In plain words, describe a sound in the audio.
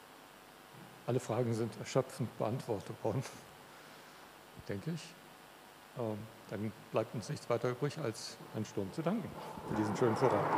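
A middle-aged man speaks calmly in a large echoing hall.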